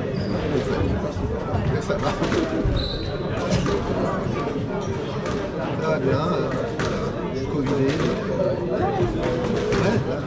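A squash ball smacks off a racket and cracks against a wall, echoing in a hard room.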